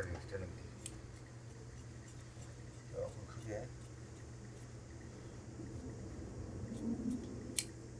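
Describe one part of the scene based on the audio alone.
Large scissors snip through thick cloth.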